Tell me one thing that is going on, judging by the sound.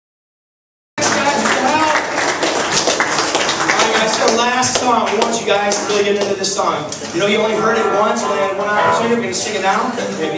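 A crowd of teenagers sings together loudly.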